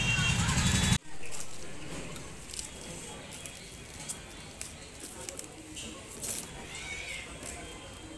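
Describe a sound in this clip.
Plastic film crinkles and rustles.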